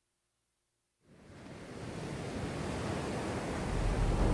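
Waves wash steadily onto a shore, growing louder.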